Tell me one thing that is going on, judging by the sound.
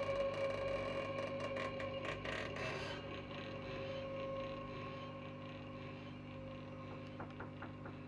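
Electronic synthesizer tones drone and hum steadily.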